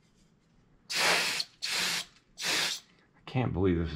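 A spray bottle hisses in several short sprays.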